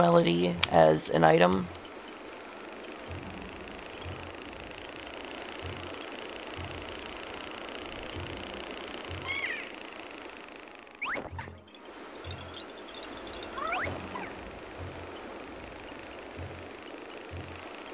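Soft, calm game music plays with a low pulse repeating evenly.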